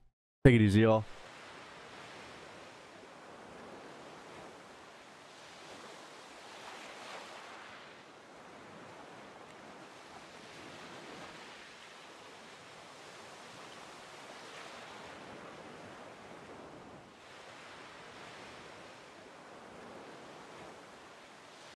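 Waves wash and crash onto a shore.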